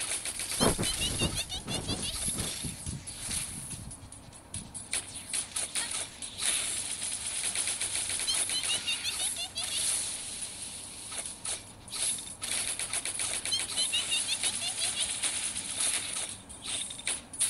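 Sword slashes and energy blasts hit rapidly with sharp, crackling impacts.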